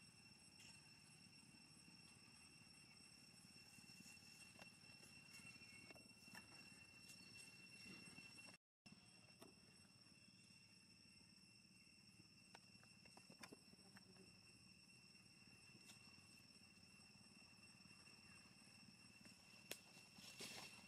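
Branches and leaves rustle as monkeys climb.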